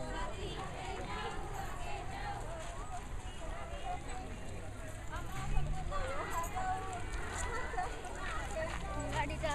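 A crowd of women chatter nearby outdoors.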